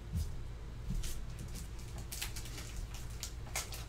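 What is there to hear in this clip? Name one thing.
Plastic wrapping crinkles and rustles as a pack is handled.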